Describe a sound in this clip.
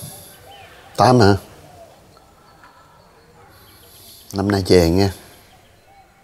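An older man speaks briefly into a phone, close by.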